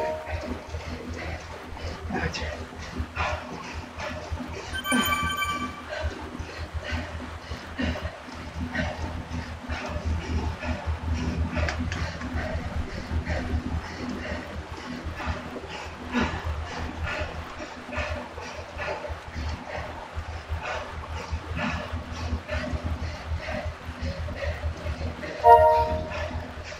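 A stationary bike trainer whirs steadily.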